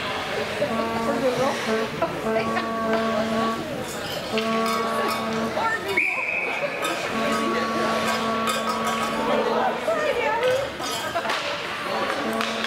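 Ice skates scrape and hiss across ice.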